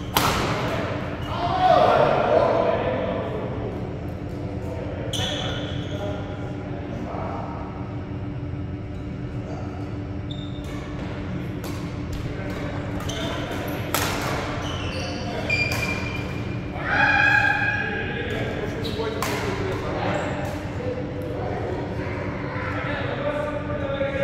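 Rackets smack shuttlecocks with sharp pops in a large echoing hall.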